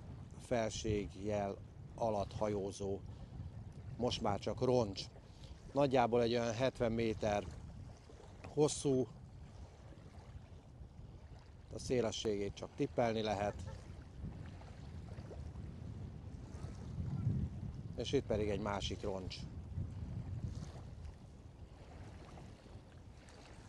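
Wind rumbles across the open water.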